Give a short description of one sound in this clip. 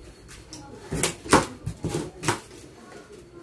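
Plastic strapping snaps sharply as it is cut.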